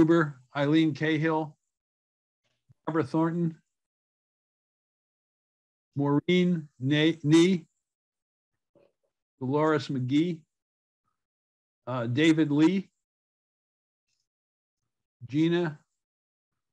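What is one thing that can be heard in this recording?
An elderly man speaks calmly in short phrases, close to a microphone.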